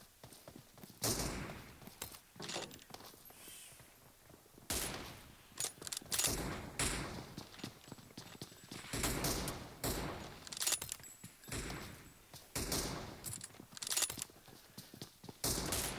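Gunshots fire in quick bursts from a game.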